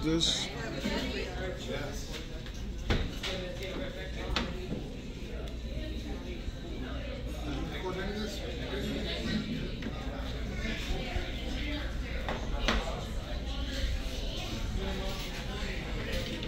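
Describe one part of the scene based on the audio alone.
Men and women chatter nearby in a busy room.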